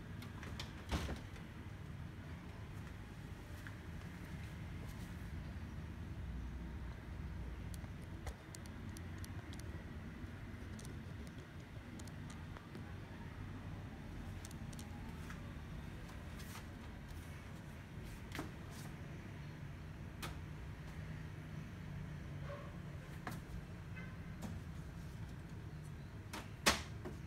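Plastic parts of a printer knock and click as they are handled.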